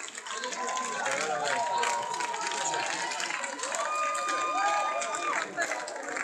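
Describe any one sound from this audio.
A young man shouts to the crowd through a microphone.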